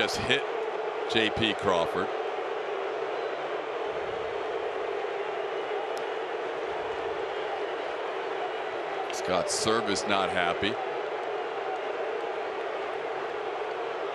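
A large crowd murmurs steadily in an open stadium.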